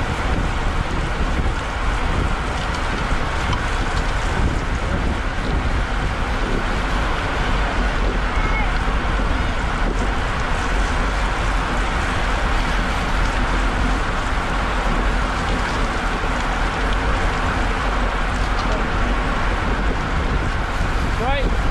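A group of bicycles whirs along close by.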